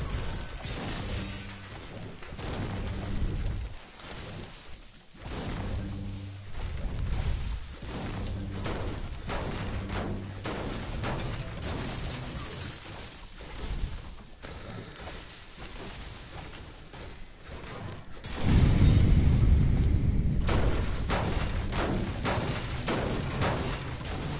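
A pickaxe strikes hard surfaces again and again with sharp thuds.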